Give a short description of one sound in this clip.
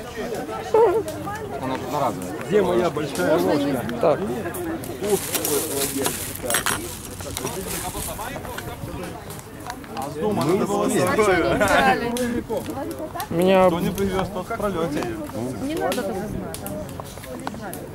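Several young people chat with animation close by.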